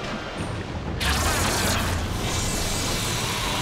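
A sharp magical blast hisses and crackles.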